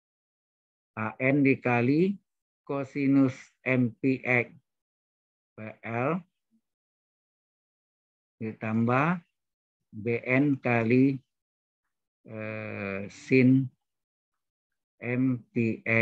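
A man speaks calmly, explaining, heard through an online call.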